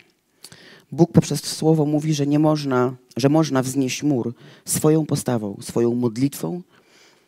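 A woman reads aloud through a microphone.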